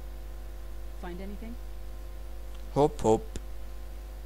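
A man speaks a few short words in a low, tense voice.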